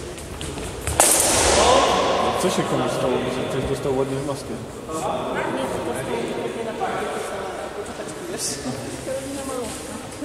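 Men talk and call out nearby in a large echoing hall.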